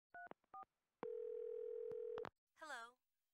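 An answering machine gives a long electronic beep.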